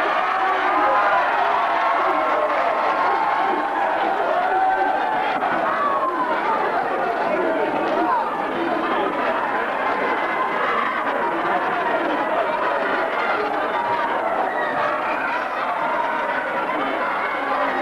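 A large crowd of people chatters and shouts in an echoing hall.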